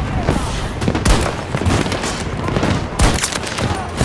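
Gunshots crack in a battle.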